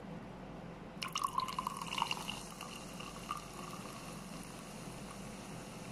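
A fizzy drink pours from a can into a glass.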